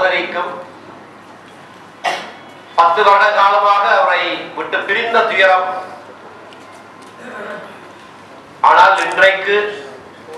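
A man speaks forcefully through a microphone and loudspeakers, with pauses between phrases.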